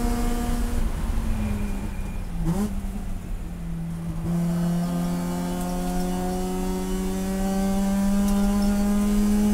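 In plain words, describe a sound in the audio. The engine drops in pitch as the car brakes into a corner, then climbs again while accelerating.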